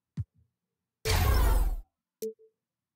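A short electronic whoosh sounds.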